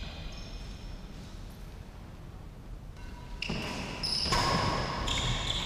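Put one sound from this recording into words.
A racket strikes a shuttlecock with a light pop.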